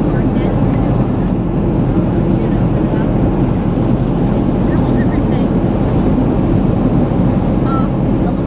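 A jet airliner's turbofan engines roar steadily, heard from inside the cabin in flight.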